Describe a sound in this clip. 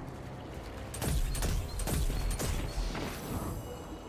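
A rifle fires a quick burst of shots.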